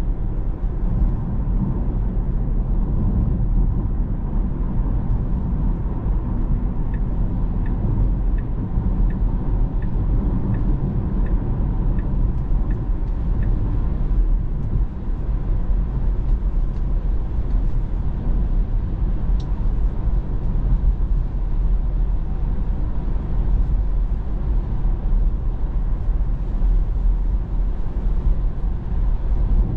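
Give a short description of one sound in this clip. Tyres rumble steadily on the road inside a moving car.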